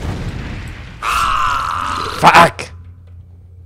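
A burst of fire roars loudly.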